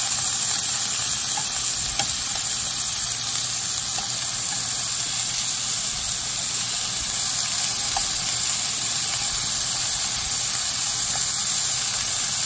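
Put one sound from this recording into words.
Metal tongs click against a pan.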